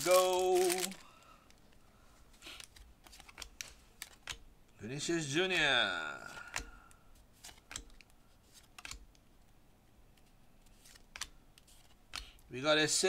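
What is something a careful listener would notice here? Trading cards slide and flick softly against each other.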